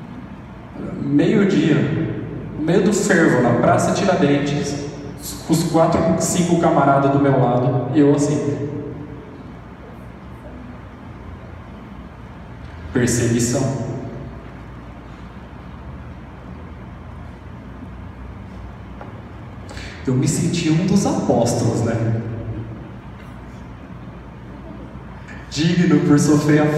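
A man speaks with animation through a microphone, heard over loudspeakers in an echoing room, with long pauses.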